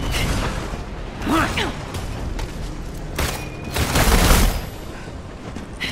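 Blades clash and strike with metallic hits.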